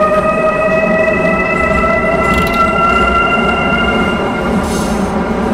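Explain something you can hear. A train's electric motor whines, rising in pitch as it speeds up.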